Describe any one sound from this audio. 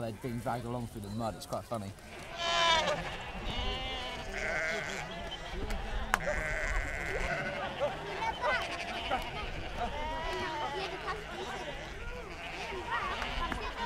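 A crowd of men, women and children murmurs in the background.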